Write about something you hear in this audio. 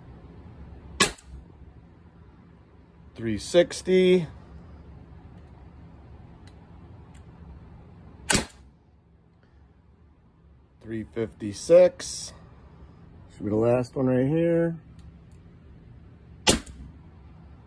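An air gun fires a sharp, loud shot indoors.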